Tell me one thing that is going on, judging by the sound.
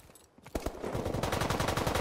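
Two guns fire in rapid bursts.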